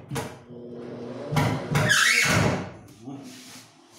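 A power drill whirs in short bursts.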